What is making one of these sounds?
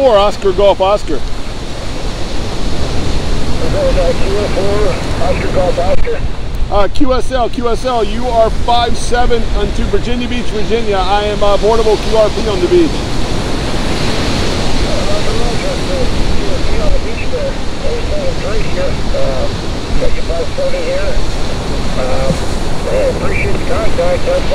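A middle-aged man speaks calmly into a handheld microphone close by.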